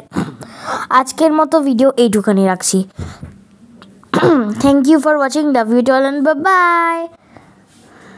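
A young woman speaks animatedly and close up.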